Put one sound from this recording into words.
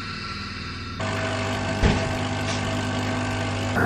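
A coffee machine hums as it brews coffee into a cup.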